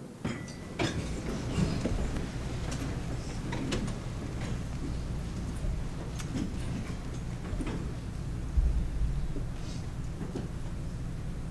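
A crowd murmurs and shuffles in a large echoing hall.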